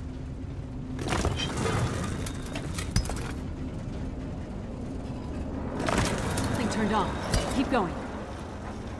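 A heavy block grinds as it turns.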